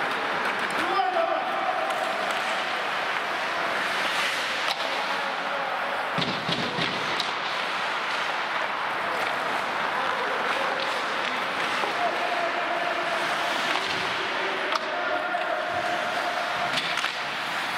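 Ice skates scrape and hiss across the ice in an echoing hall.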